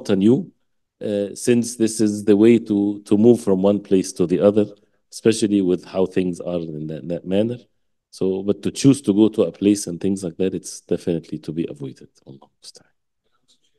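An adult man speaks calmly into a microphone, as if giving a lecture.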